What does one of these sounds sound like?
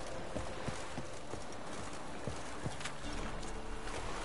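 Footsteps thud on a wooden pier.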